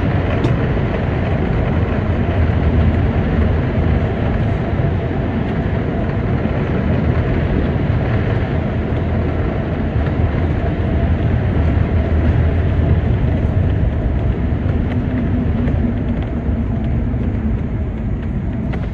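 Tyres roll with a steady low rumble on the road.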